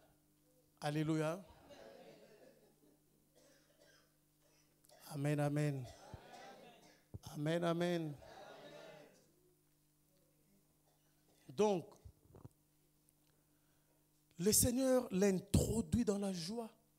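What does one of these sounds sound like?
A man preaches loudly and with emphasis into a microphone, in an echoing room.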